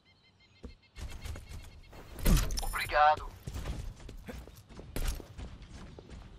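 Quick footsteps patter on pavement in a video game.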